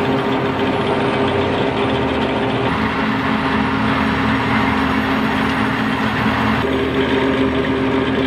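A harvester engine drones steadily.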